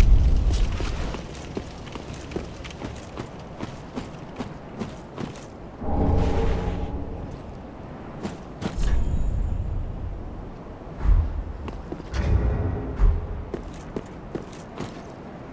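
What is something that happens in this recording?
Armoured footsteps clank on stone and gravel.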